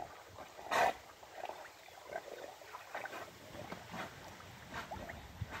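A dog paddles through water with soft, lapping splashes.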